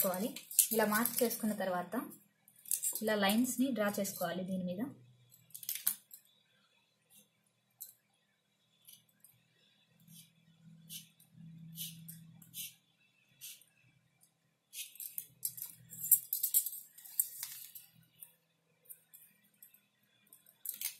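A marker scratches across paper.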